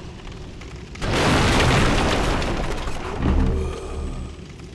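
Wooden crates smash and splinter.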